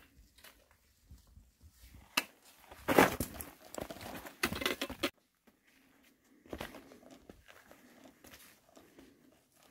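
Footsteps crunch on a rocky trail.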